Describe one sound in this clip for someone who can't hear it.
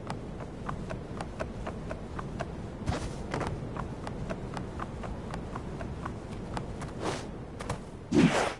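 Footsteps patter quickly up wooden stairs.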